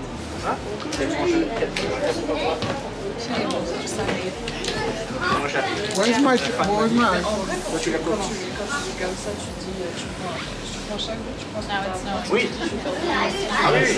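Several adults chat calmly close by.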